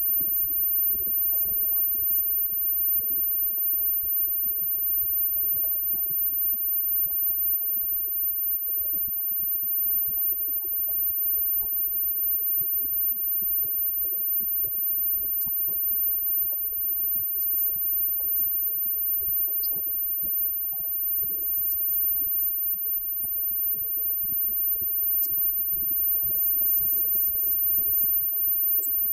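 A live band plays rock music loudly.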